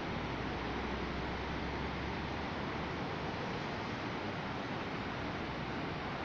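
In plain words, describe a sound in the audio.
A waterfall roars far off.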